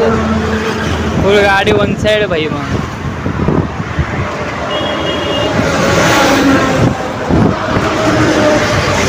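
Cars pass by on a nearby road.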